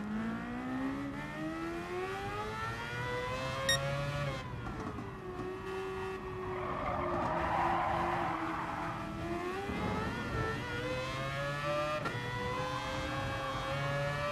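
A racing car engine revs high and changes pitch through the gears.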